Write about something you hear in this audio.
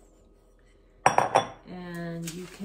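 A glass bowl clinks against a hard surface.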